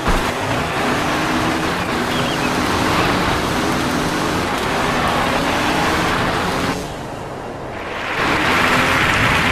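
Dirt bike engines rev and whine loudly.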